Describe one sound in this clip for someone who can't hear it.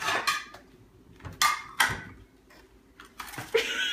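A plate clinks down onto a hard countertop.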